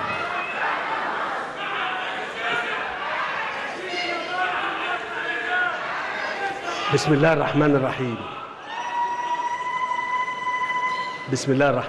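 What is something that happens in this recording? A large crowd cheers and chants loudly.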